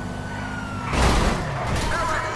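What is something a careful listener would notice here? A car crashes into something with a loud bang.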